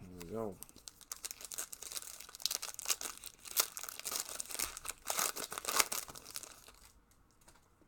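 Plastic wrapping crinkles and tears.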